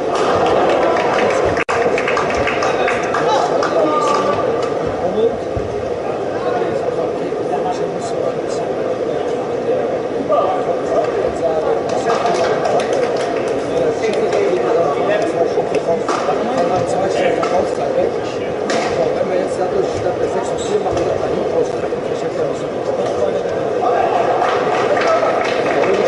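A large crowd murmurs and chatters throughout in a big echoing hall.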